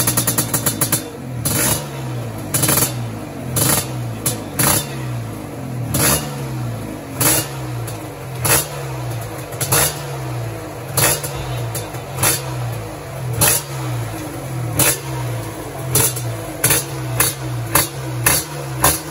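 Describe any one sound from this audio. A racing motorcycle engine is blipped again and again, each rev rising and falling quickly.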